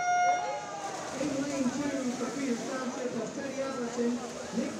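Spectators cheer and shout in an echoing hall.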